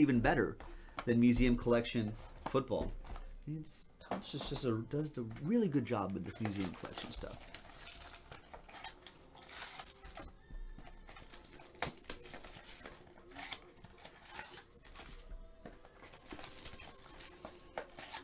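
Cardboard packs rustle and tear as they are opened.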